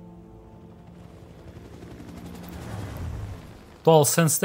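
A helicopter's rotor thuds as it flies past.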